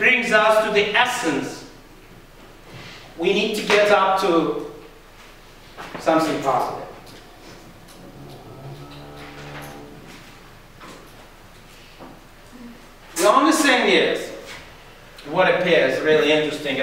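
An elderly man speaks calmly in short bursts with pauses, in a small echoing room.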